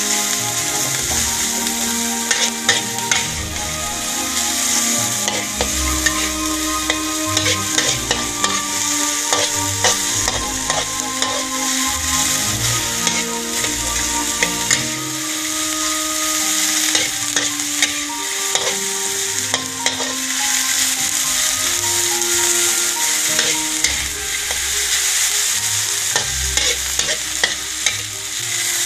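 Vegetables sizzle in hot oil.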